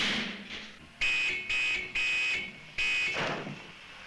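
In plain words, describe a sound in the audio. A car crashes into trees with a loud bang.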